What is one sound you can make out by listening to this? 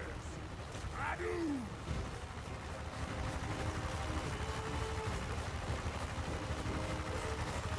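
A low battle din rumbles steadily.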